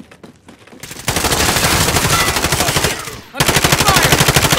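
Automatic gunfire rattles loudly in rapid bursts.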